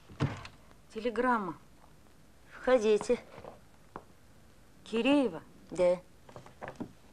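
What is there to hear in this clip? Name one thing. An elderly woman speaks.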